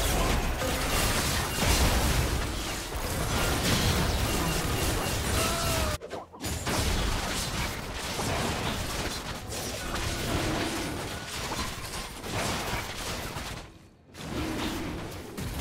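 Magic blasts crackle and whoosh during a fantasy battle.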